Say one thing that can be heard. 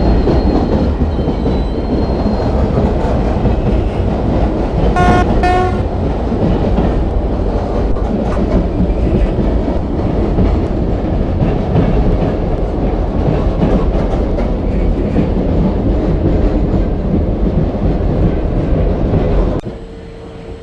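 A train rumbles and clatters along the rails.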